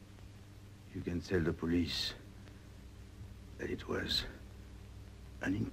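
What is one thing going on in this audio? A man speaks hoarsely and weakly close by, in short bursts.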